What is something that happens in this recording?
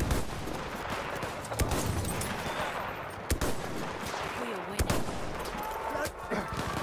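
Explosions and gunfire rumble in the distance.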